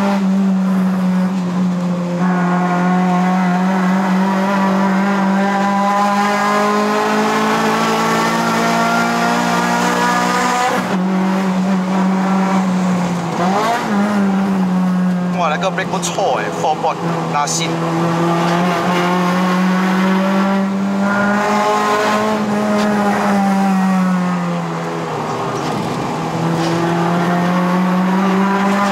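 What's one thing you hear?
A car engine drones loudly from inside the cabin, rising and falling in pitch as the car accelerates and slows.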